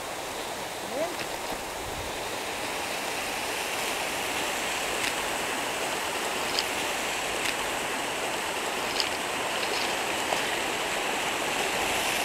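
Twigs and dry leaves crackle underfoot.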